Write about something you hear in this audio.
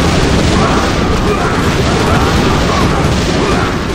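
Gunfire and explosions crackle in a battle.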